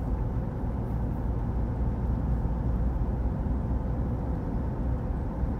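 Tyres roll steadily on the road surface.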